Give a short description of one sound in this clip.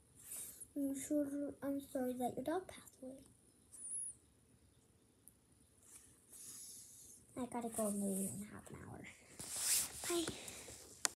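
A young child speaks playfully close up.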